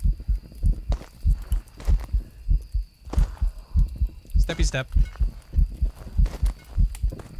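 Footsteps thud steadily on dirt.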